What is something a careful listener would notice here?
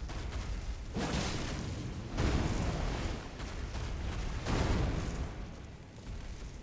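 Heavy blows thud as a huge creature attacks.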